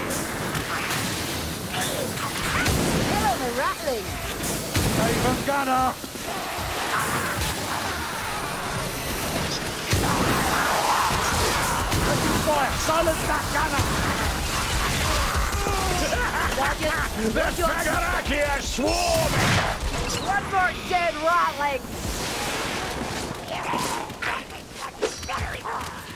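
Heavy guns fire with loud bangs.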